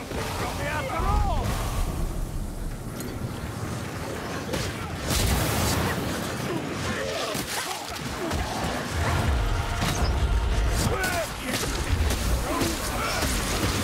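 Melee weapons thud and slash against bodies in a fight.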